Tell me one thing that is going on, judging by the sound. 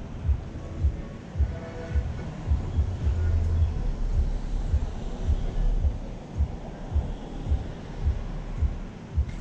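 Wind gusts outdoors, buffeting with low rumbles.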